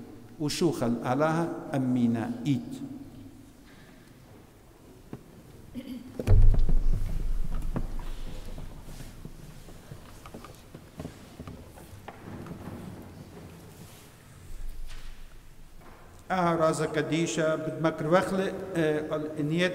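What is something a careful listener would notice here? A middle-aged man chants slowly into a microphone.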